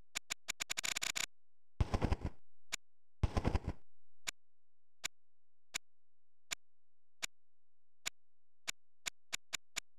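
Short electronic menu clicks sound one after another at a steady pace.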